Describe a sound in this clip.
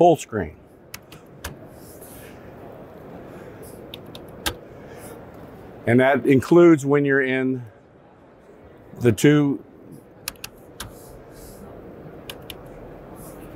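Small buttons click now and then.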